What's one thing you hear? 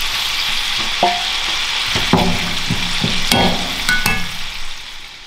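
A metal spatula scrapes and knocks against a frying pan.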